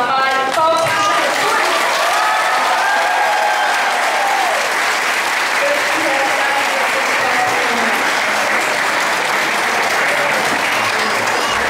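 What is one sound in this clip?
A crowd of women ululate and cheer.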